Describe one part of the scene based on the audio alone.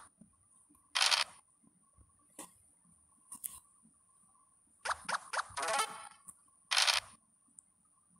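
A short rattling game sound plays as a die is rolled.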